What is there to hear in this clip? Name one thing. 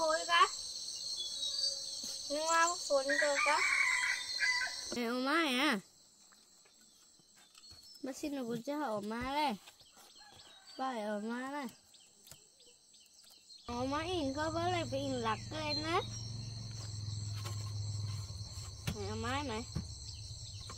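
A young boy speaks softly and gently nearby.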